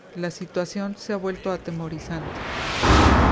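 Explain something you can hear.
A middle-aged woman talks loudly and with animation into a phone close by.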